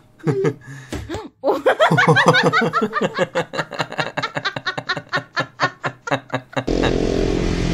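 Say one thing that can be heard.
A small child laughs loudly and giggles close by.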